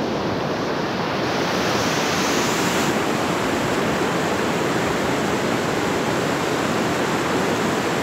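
A swollen river rushes and roars steadily close by.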